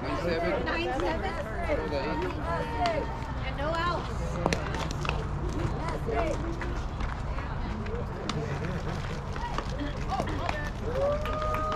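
Young women shout and cheer from across an open field.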